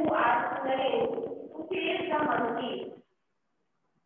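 A woman speaks clearly and loudly.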